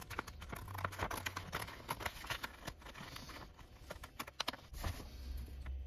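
Scissors snip through thin card.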